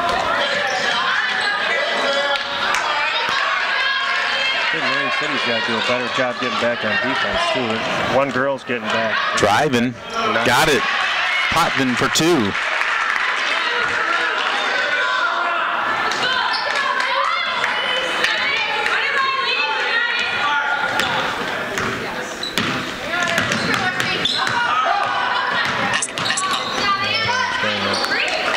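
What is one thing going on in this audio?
A crowd in a large echoing gym chatters and cheers throughout.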